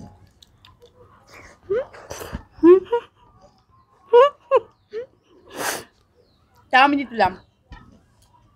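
Young women chew and eat food noisily.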